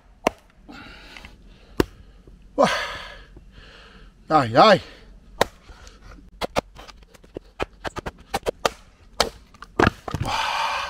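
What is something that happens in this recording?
A knife blade knocks sharply into wood, again and again.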